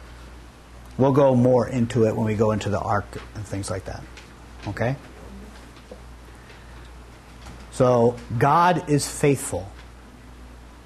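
A middle-aged man speaks with animation into a clip-on microphone, pausing between phrases.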